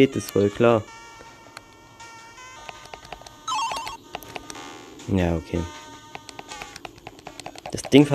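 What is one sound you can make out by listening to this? Short electronic game sound effects chirp and blip.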